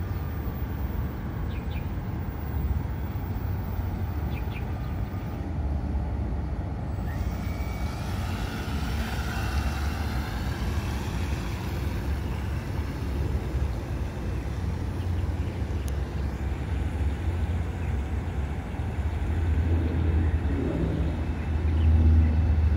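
A small model boat motor buzzes across the water.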